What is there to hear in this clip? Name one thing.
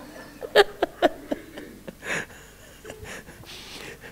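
A man laughs softly into a microphone.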